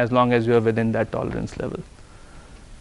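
A man speaks to a room in a clear, lecturing voice.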